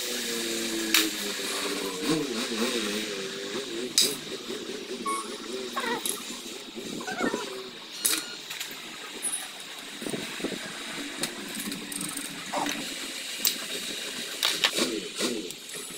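Metal tools clink and tap against engine parts.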